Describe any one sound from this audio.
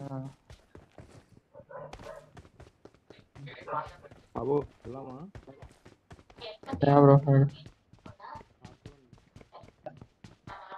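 A game character's footsteps tap on the ground.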